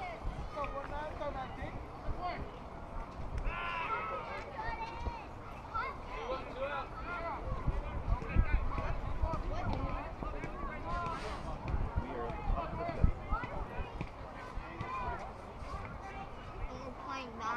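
Young players and adults call out and chatter across an open field.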